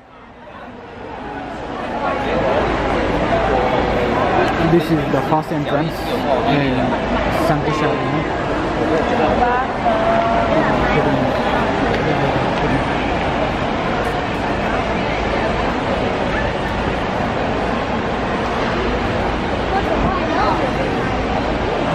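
A crowd chatters and murmurs.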